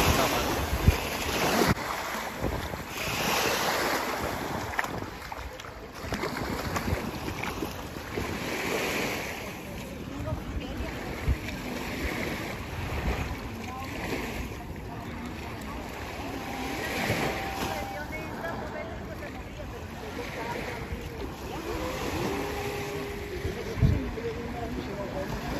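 Small waves wash onto the shore.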